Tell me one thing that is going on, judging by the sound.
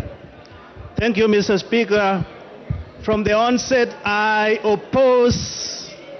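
A man speaks firmly through a microphone in a large echoing hall.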